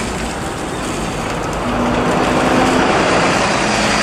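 A bus rolls past close by with a rushing noise.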